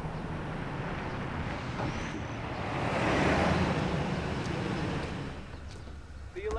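A car engine hums as a vehicle drives past.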